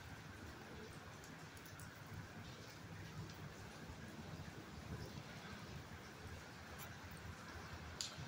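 A dog sniffs close by.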